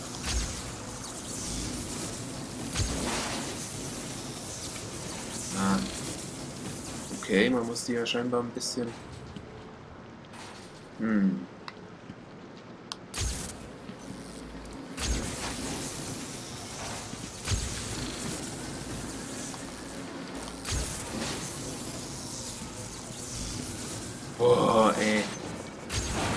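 Electricity crackles and buzzes in sharp bursts.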